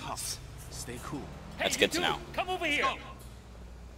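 A man shouts commands loudly.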